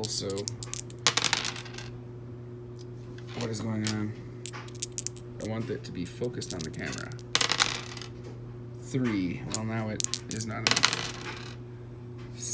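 Dice clatter and roll across a wooden tabletop.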